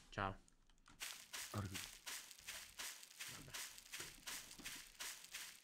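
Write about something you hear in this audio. Footsteps tread quickly and evenly on the ground.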